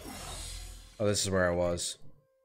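A man speaks loudly into a close microphone.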